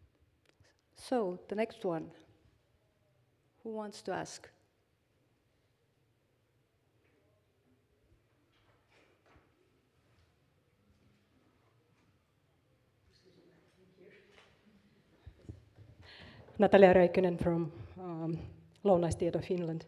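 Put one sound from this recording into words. A young man speaks calmly through a microphone in a large room.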